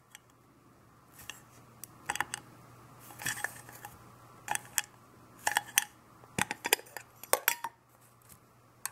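A metal tin lid scrapes and clinks as it is pried open.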